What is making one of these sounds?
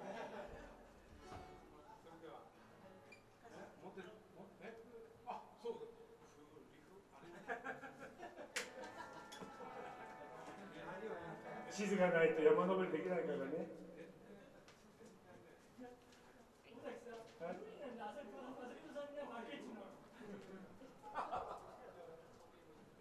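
An acoustic guitar strums.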